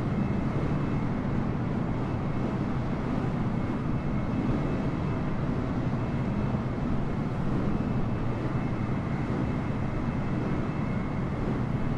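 A jet airliner's engines roar steadily as it flies low.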